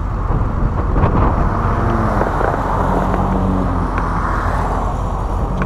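A pickup truck towing a rattling trailer drives by close up.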